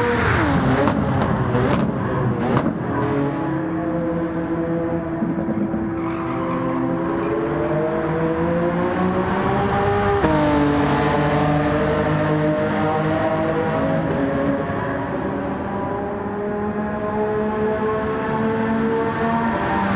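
A racing car engine roars at high revs, rising and falling in pitch as it shifts gears.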